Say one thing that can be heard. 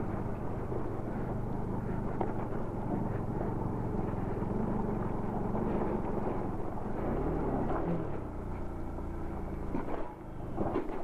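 A motorcycle engine rumbles steadily while riding over rough stones.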